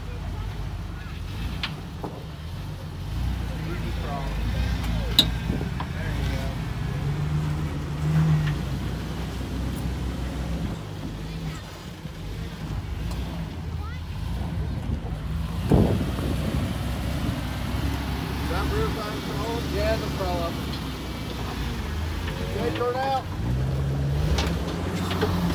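Tyres grind and scrape over rock.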